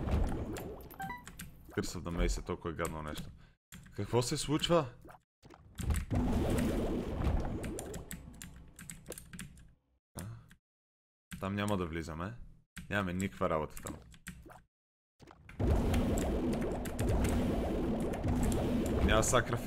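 A young man talks with animation, close to a headset microphone.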